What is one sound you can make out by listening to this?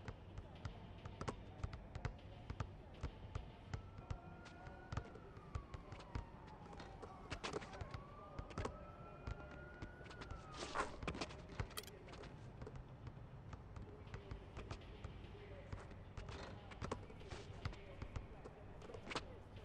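A basketball bounces on an outdoor court as it is dribbled.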